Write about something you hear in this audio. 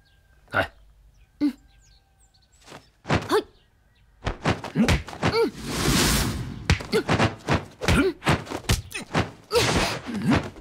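Fists and palms strike and whoosh in a fast fight.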